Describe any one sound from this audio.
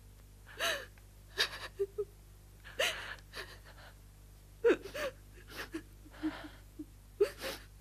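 A woman sobs and wails, close by.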